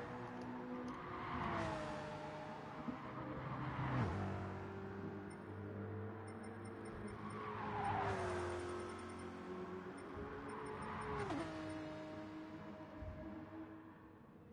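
Racing car engines roar past one after another.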